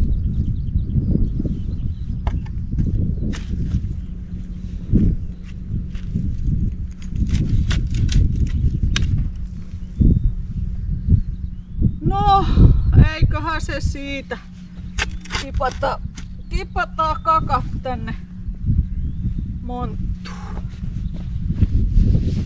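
A shovel digs and scrapes through soil.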